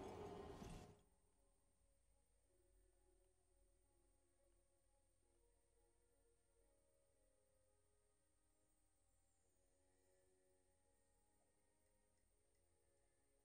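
Soft music plays quietly.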